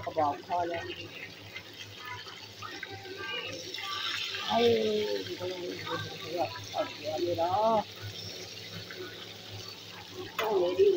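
Hot oil sizzles and crackles in a frying pan.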